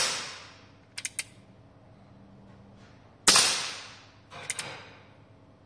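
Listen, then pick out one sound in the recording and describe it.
A revolver's hammer clicks as it is cocked.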